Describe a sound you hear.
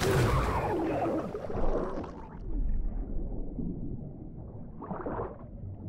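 Water rumbles and gurgles, muffled, as if heard underwater.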